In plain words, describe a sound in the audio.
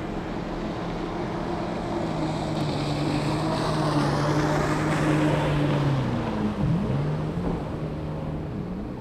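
A motorboat roars past and fades, its pitch dropping.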